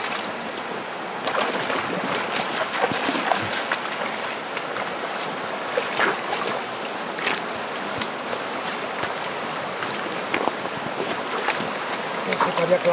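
Boots crunch and clack on loose stones.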